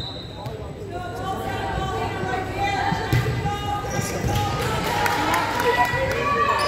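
Young women shout and call out to each other in a large echoing hall.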